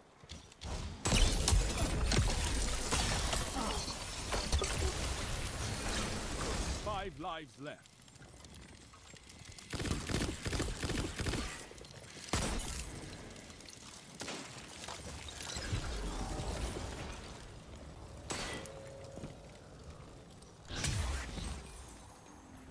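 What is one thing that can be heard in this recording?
Gunfire and energy blasts boom and crackle in loud bursts.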